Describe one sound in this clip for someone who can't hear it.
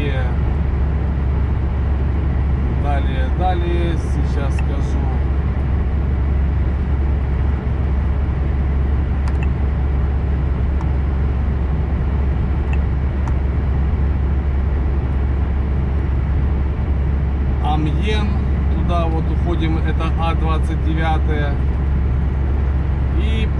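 A car drives steadily along a highway, its tyres and engine rumbling low from inside the cabin.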